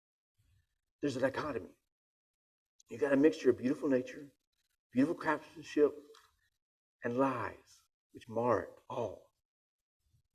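A man reads aloud calmly, close to a microphone.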